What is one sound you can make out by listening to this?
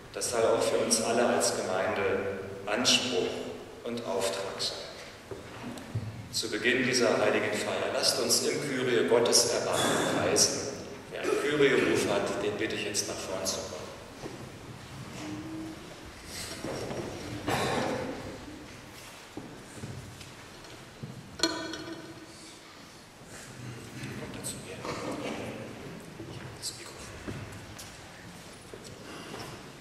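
An elderly man speaks in a slow chant in a reverberant hall.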